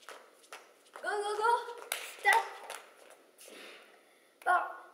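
Young girls shout out loudly together.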